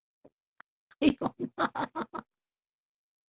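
A young woman laughs over an online call.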